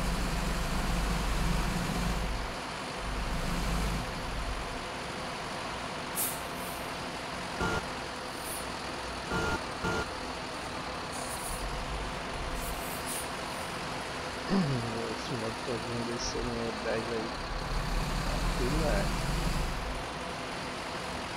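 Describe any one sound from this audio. A diesel coach bus engine rumbles as the bus drives.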